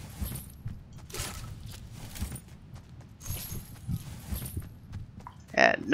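Footsteps run lightly over sand.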